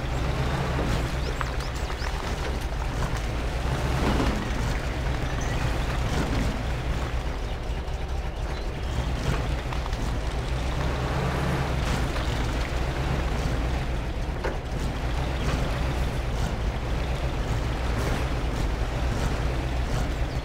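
Truck tyres squelch through deep mud.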